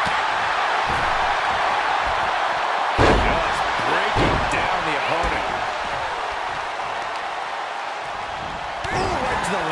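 A large crowd cheers and roars steadily.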